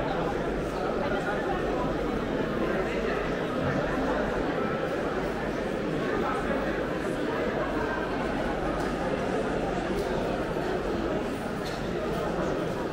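Footsteps shuffle on a stone floor.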